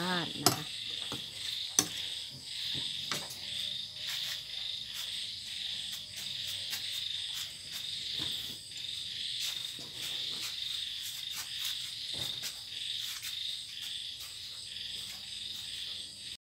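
Soup bubbles and simmers steadily in a pan.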